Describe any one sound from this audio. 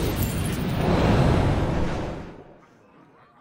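A magic spell bursts with a loud rumbling whoosh.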